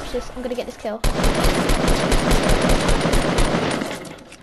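A rifle fires rapid shots in a steady rhythm.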